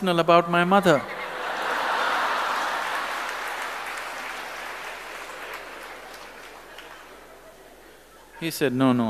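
A large audience laughs and slowly quiets down.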